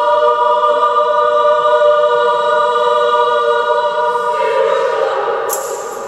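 A children's choir sings a long held chord in a large echoing hall.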